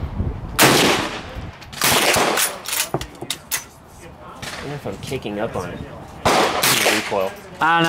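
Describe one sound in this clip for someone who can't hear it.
A rifle bolt clicks and slides as it is worked.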